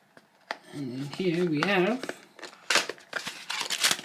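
A cardboard box flap is pulled open.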